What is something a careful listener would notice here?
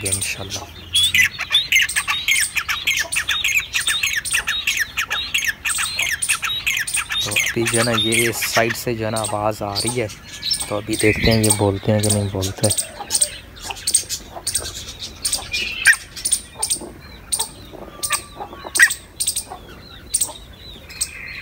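Small birds chirp rapidly and repeatedly.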